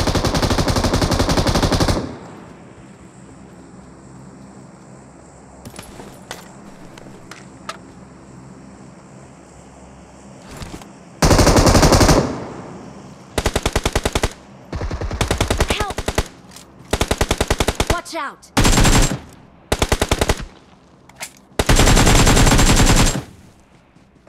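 Rifle fire rattles in rapid bursts.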